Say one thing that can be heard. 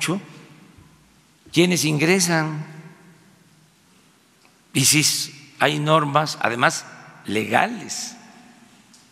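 An elderly man speaks calmly into a microphone in short phrases with pauses.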